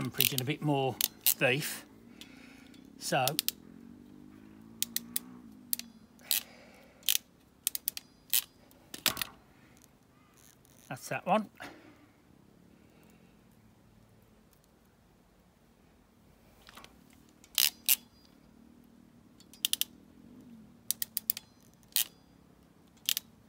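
A hand tool clicks and snaps sharply.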